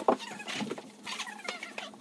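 A young woman exclaims loudly.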